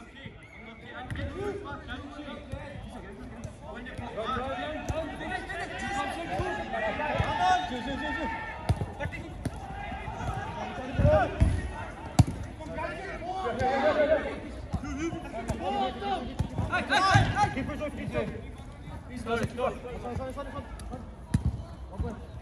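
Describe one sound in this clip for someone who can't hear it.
Men shout and call out to each other outdoors at a distance.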